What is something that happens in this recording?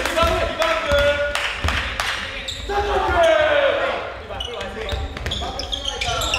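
A basketball bounces on a hard wooden floor with loud thuds.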